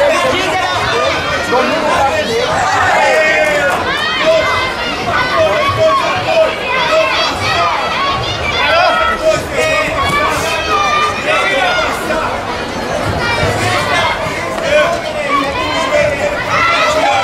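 A crowd of spectators shouts and cheers, echoing in a large hall.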